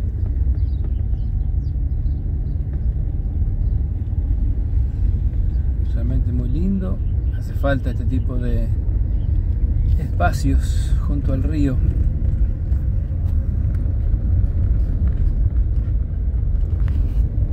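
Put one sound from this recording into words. Tyres rumble over a rough gravel road.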